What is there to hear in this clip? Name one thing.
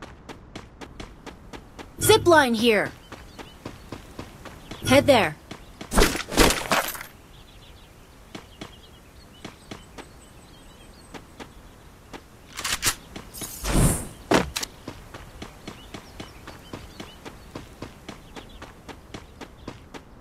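Quick footsteps run steadily over grass.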